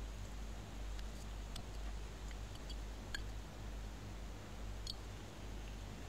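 A small bottle is handled with light clicks.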